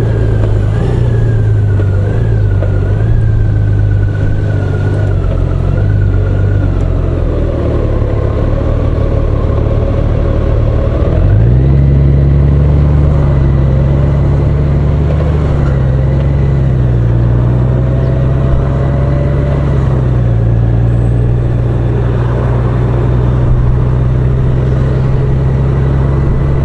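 A touring motorcycle engine hums while cruising along a road.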